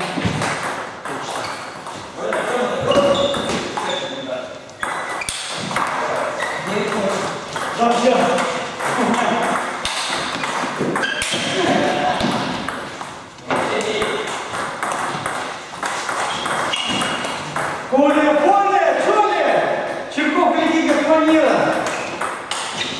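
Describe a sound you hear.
A table tennis ball clicks back and forth on paddles and a table.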